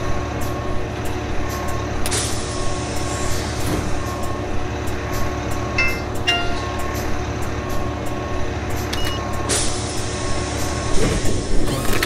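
A diesel city bus engine idles.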